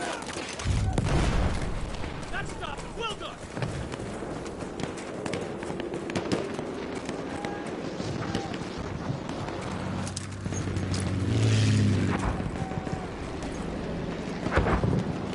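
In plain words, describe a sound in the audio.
Explosions boom loudly nearby.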